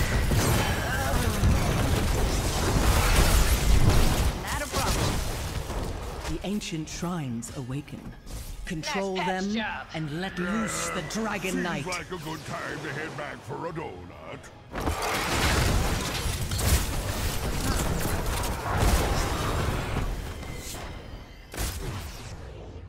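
Game battle effects crackle, blast and zap rapidly.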